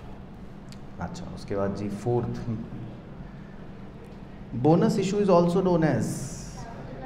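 A young man speaks into a close microphone, explaining calmly.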